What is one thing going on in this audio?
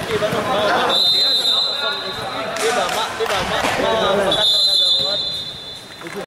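A referee's whistle blows two short, shrill blasts.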